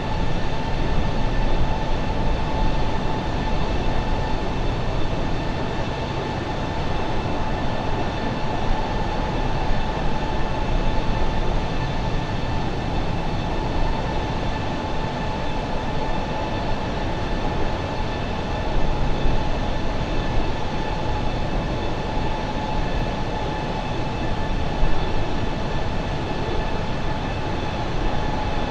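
Jet engines roar and whine steadily.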